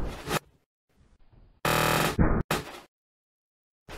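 A crinkly snack bag lands with a soft thump on a carpeted floor.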